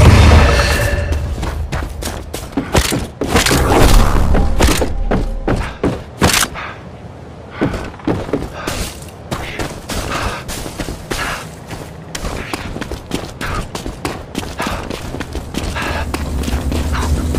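Footsteps run over grass and gravel.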